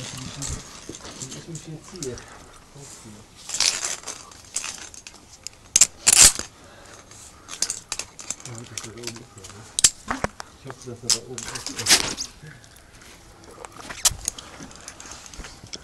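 A steel cable clinks and rattles against rock.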